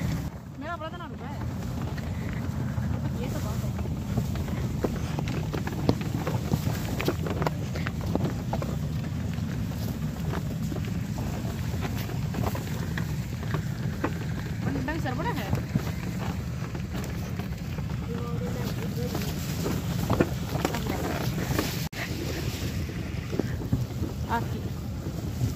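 Women talk with each other close by.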